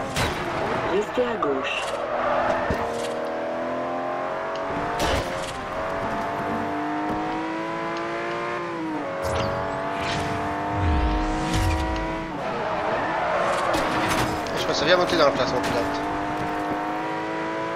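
A sports car engine roars and revs up and down as gears shift.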